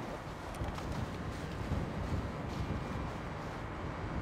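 Footsteps crunch softly on snow.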